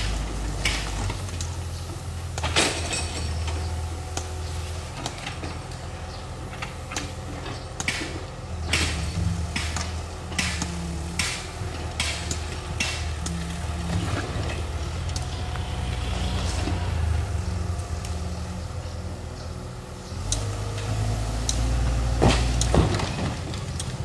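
A hydraulic breaker knocks against masonry.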